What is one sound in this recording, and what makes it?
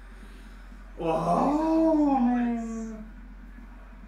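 A young man groans in dismay.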